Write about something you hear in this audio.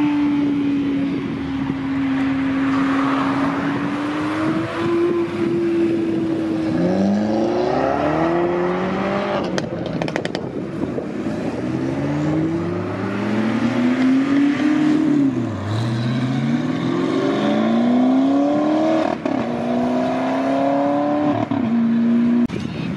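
Sports car engines rumble and rev hard as cars pull away one after another.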